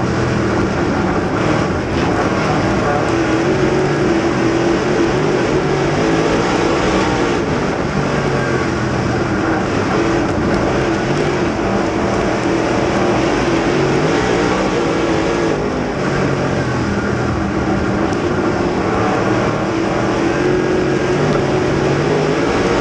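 A race car engine roars loudly up close, its pitch rising and falling with the throttle.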